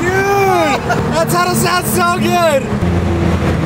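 A man laughs and shouts loudly close by.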